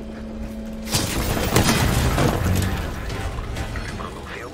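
An electric machine crackles and bursts with a loud roar.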